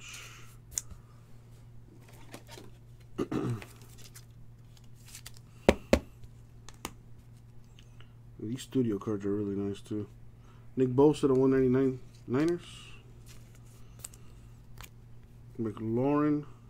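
Trading cards rustle and snap as they are handled and flipped.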